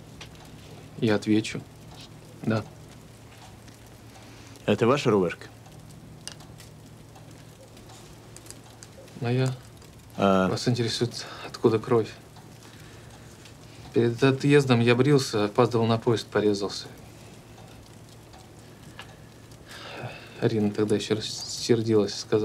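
A man speaks quietly and gravely, close by.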